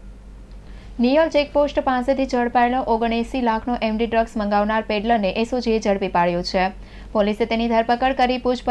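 A young woman reads out the news calmly through a microphone.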